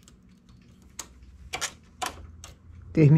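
A knitting machine carriage slides across the needle bed with a clatter.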